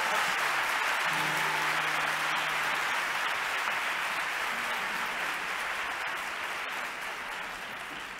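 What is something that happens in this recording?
A group of men sing together in a large hall.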